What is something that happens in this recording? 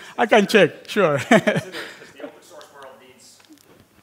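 A man laughs heartily into a headset microphone.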